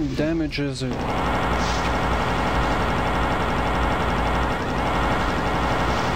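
A plasma gun fires rapid buzzing shots.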